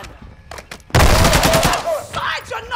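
Rapid gunfire bursts out close by.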